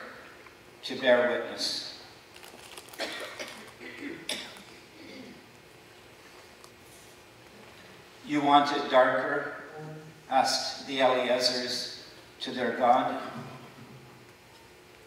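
An elderly man chants slowly into a microphone in a large room.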